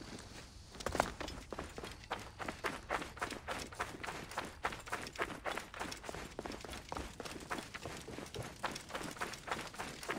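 Footsteps crunch quickly on gravel and stones.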